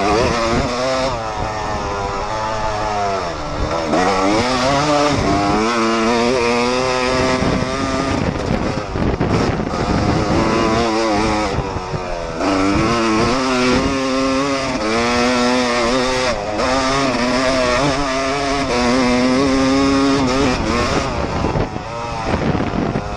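A motorcycle engine revs loudly up close, rising and falling as the rider shifts gears.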